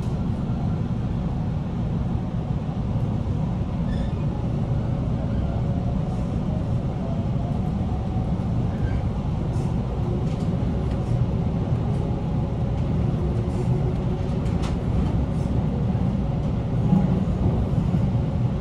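A low rumble of wheels on rails fills the inside of a moving electric train.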